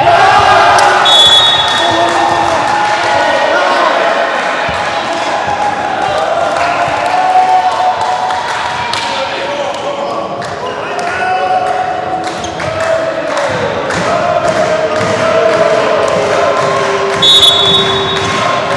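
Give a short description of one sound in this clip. A referee's whistle blows short, sharp blasts.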